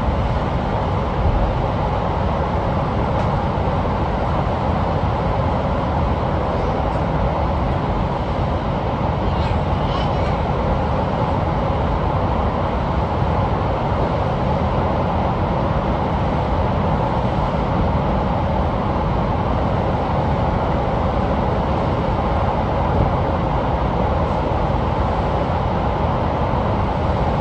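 A train rumbles steadily through a tunnel at speed.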